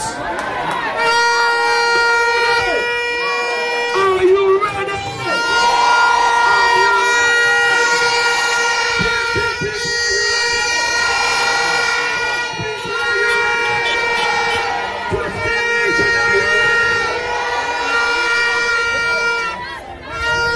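Loud music blares from large loudspeakers.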